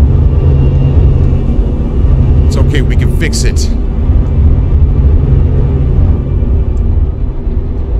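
A spacecraft engine hums with a deep, steady rumble.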